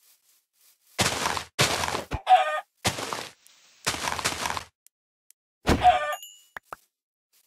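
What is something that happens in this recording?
A chicken clucks.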